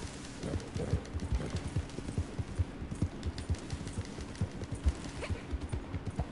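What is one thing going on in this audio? A horse's hooves thud quickly over soft ground at a gallop.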